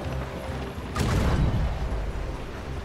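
Cannons boom.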